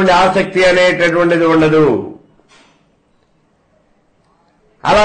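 An elderly man speaks calmly and clearly into a close microphone.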